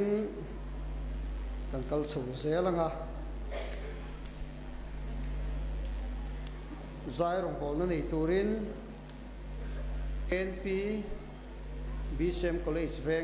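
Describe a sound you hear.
A man speaks slowly and calmly through a microphone in an echoing hall.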